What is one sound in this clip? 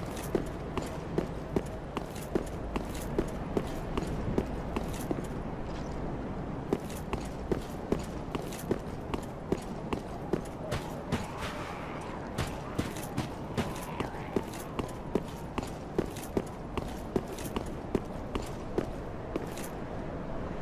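Armoured footsteps clank quickly and steadily on stone.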